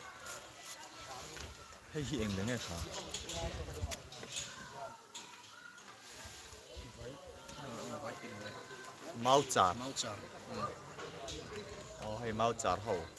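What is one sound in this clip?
Young men talk together in a huddle, close by, outdoors.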